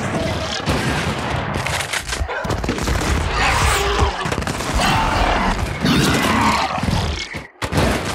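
Rifles fire loudly, one shot after another.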